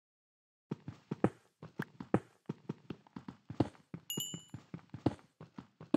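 A stone block breaks and crumbles.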